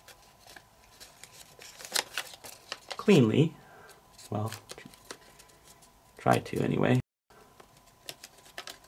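Paper crinkles and rustles as it is folded and creased.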